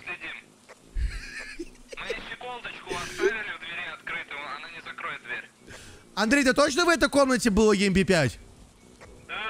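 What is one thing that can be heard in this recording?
Several young men talk with animation over headset microphones.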